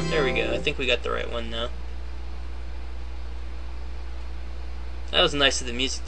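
Electronic game music plays in short tuneful bursts.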